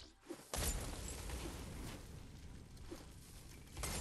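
Flames crackle and roar close by.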